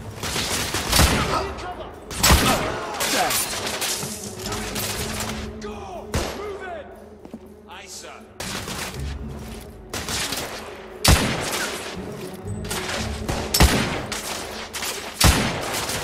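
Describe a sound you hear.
Rifle shots ring out loudly, one at a time, with echoes.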